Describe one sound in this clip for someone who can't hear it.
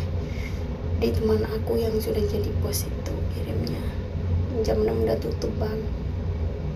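A middle-aged woman speaks in a strained, pained voice close by.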